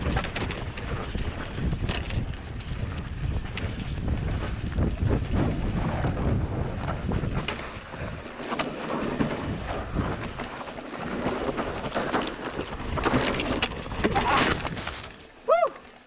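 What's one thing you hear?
Bicycle tyres rumble and crunch over a dirt trail.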